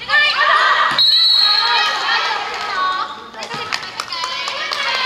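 A volleyball is struck with a smack.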